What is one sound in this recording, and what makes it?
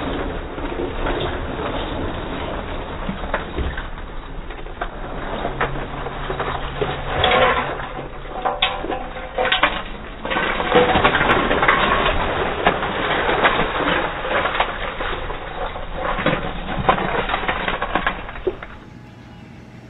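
A metal scoop digs and rattles through ice cubes.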